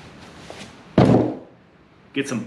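A man's boot stomps down hard on the floor nearby.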